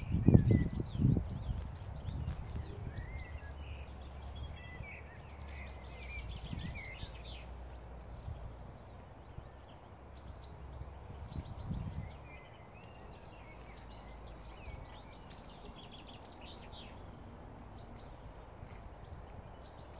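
A cow tears and munches grass.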